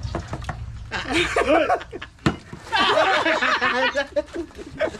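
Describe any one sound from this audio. A man laughs heartily.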